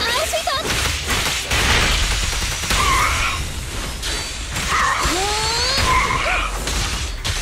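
Blades slash and clang in rapid game combat.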